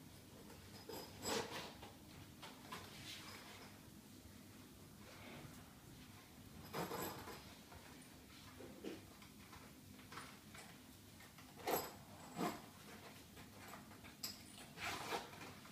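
A backpack rustles and its zipper rasps as it is handled.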